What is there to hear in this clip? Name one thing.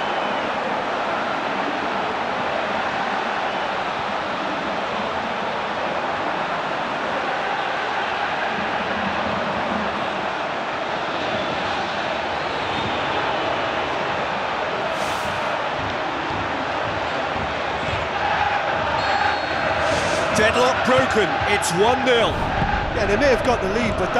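A large stadium crowd cheers and roars steadily.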